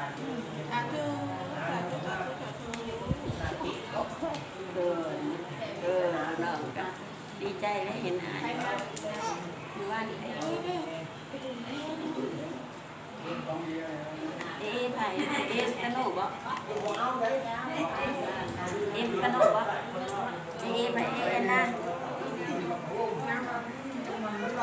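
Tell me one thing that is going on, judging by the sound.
Several adults murmur and talk quietly in a room.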